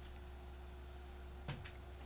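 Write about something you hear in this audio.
A small plastic game piece taps down on a board.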